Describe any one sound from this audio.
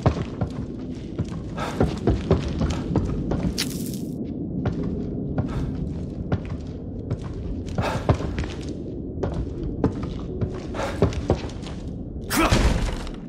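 Footsteps thud steadily across a hard floor.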